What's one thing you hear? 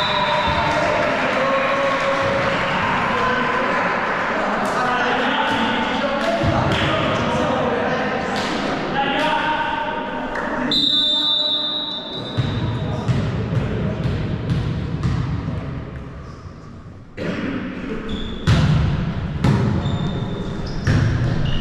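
A ball thuds against the floor.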